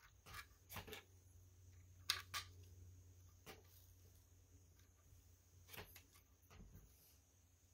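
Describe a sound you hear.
Plastic toy bricks click and clack as they are handled.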